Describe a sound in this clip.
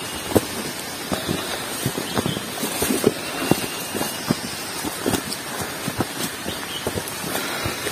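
Leaves and branches swish against passing hikers.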